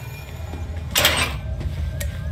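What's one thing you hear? A metal cabinet door swings open with a clank.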